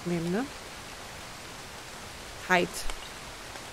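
A woman speaks briefly and close to a microphone.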